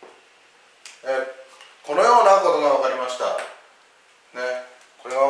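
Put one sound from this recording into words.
A middle-aged man speaks calmly and clearly close to a microphone.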